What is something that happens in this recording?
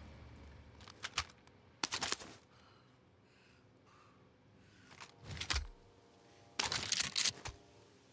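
Metal gun parts clack and rattle in short bursts.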